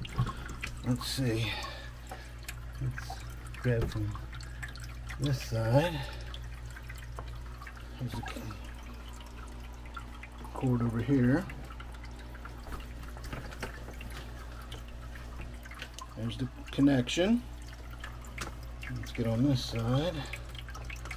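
Water trickles steadily into a small basin.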